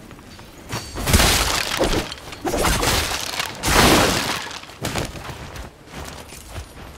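Blades clash and slash in a fight with loud impacts.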